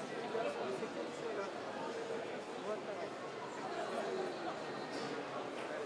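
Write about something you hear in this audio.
A crowd of adults chatters in a busy, echoing hall.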